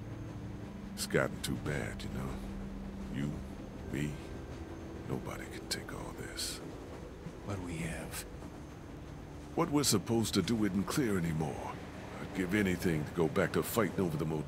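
A man speaks in a worried, earnest voice.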